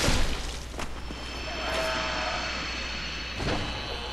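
A magic blast crackles and roars.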